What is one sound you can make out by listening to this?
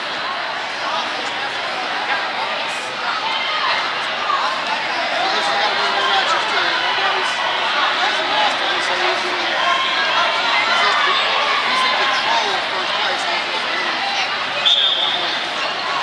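A crowd of men, women and children chatters in a large echoing hall.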